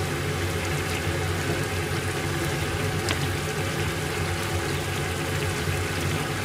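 A metal ladle scrapes and clinks against a pan.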